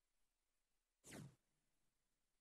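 A short menu tone sounds.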